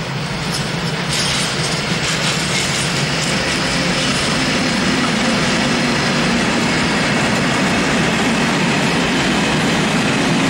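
An electric locomotive hums loudly as it passes close by.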